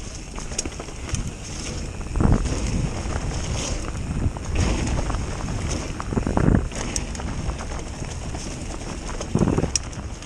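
Wind rushes past as a bicycle speeds downhill.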